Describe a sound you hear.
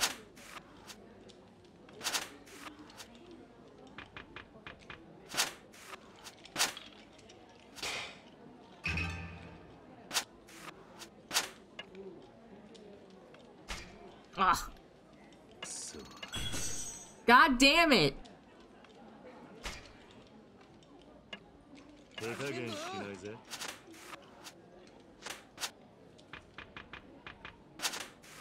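Game cards snap down with short clicks.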